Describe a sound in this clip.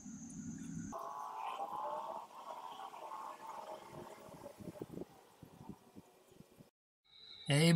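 Thick liquid pours into a glass funnel.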